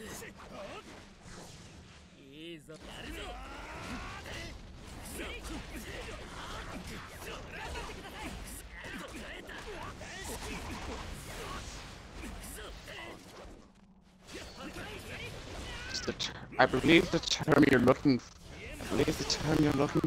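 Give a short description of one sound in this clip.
Swords clash and slash in quick bursts.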